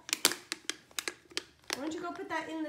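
A metal can clicks and taps in a small child's hands.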